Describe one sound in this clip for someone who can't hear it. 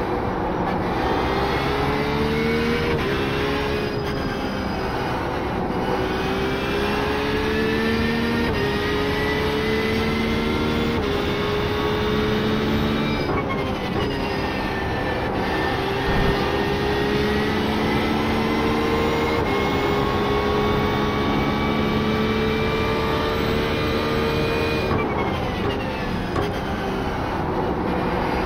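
A racing car engine roars, rising in pitch as it speeds up and dropping sharply at each gear change.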